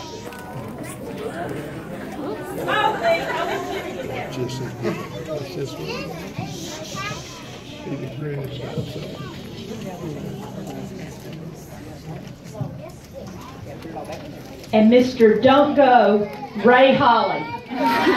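A woman speaks to a small audience.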